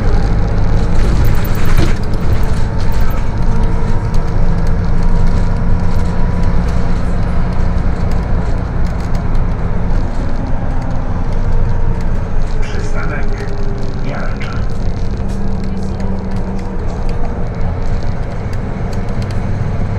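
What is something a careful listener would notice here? A bus engine hums steadily from inside as the bus drives along a street.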